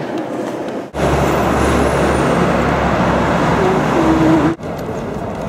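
Traffic roars past on a busy road.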